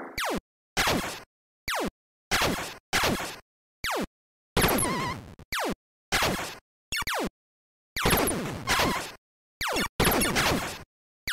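A game's laser shots zap with falling pitch, again and again.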